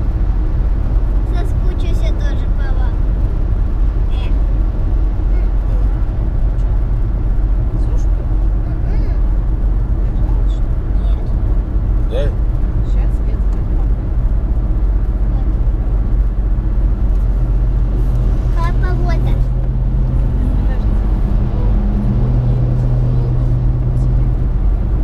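A car engine hums steadily with a low rumble of tyres on the road from inside the car.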